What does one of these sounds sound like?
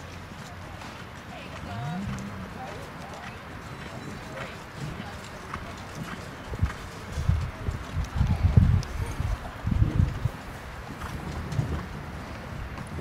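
A horse trots on soft grass with muffled hoofbeats.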